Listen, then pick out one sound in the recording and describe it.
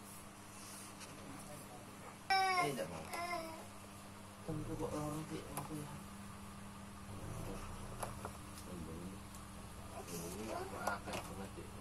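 Large paper sheets of a spiral-bound book rustle as a hand turns them.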